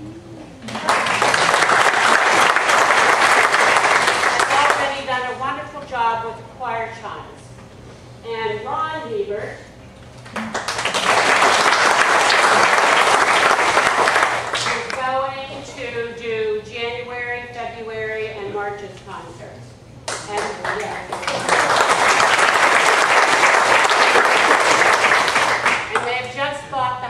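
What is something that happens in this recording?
A crowd applauds loudly in bursts.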